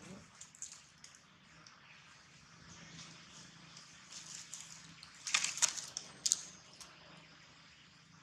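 Dry leaves rustle and crunch as a baby monkey scrambles over them.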